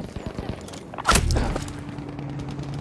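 An artillery shell explodes with a loud boom.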